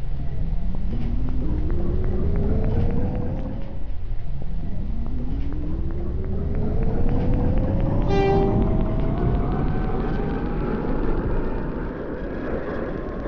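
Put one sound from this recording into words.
A subway train rumbles and clatters along the tracks.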